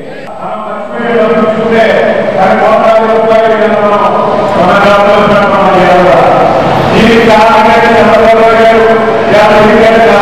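A man speaks loudly and with animation into a microphone over loudspeakers, echoing in a large hall.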